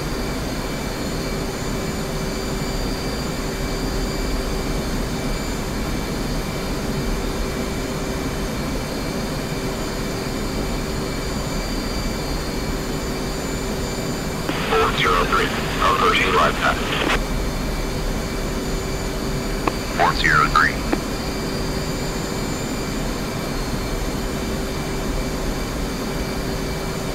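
A jet engine drones steadily inside a cockpit.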